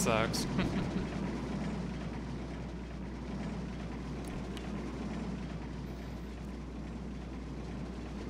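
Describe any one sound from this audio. Roller coaster cars rattle along a wooden track.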